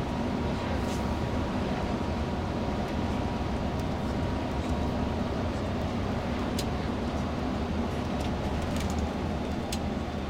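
Tyres rumble steadily on an asphalt road.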